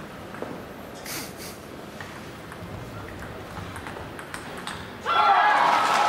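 A ping-pong ball is struck back and forth in a quick rally.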